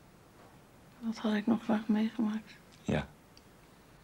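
A man speaks softly, close by.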